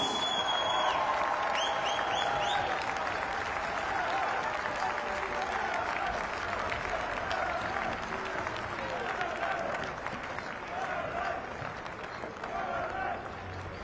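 Basketball players clap their hands in rhythm.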